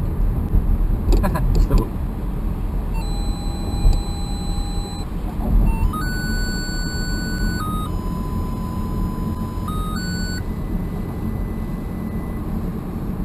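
A car engine hums low and steady as the car drives.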